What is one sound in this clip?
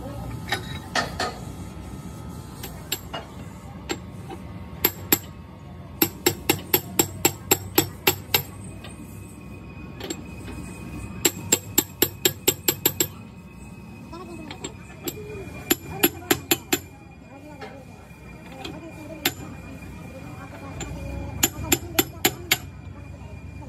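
A hammer taps rapidly on a metal tool, ringing sharply.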